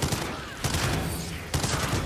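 An electric zap crackles loudly.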